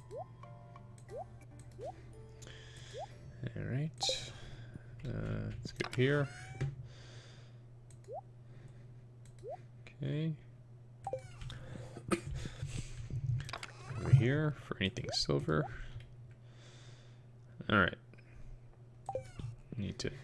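Short electronic blips chirp from a video game.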